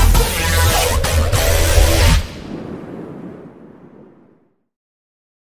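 A loud swooshing burst rushes past and slowly fades away.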